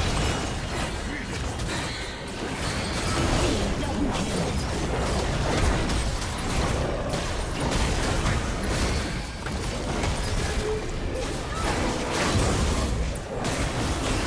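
Magic blasts and weapon strikes burst and crackle in a fast fight.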